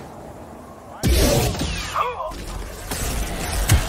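Blaster shots zap.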